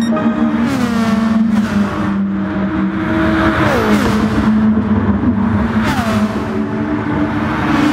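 Racing car engines roar loudly, their pitch dropping and rising as the cars shift gears and brake.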